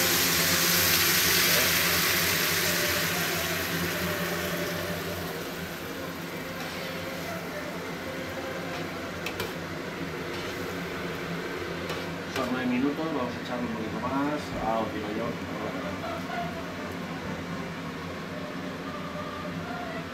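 A pan of food simmers and bubbles softly.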